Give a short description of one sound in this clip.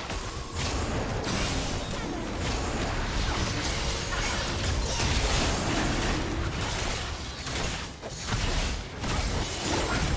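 Magic blasts whoosh and crackle in a busy video game fight.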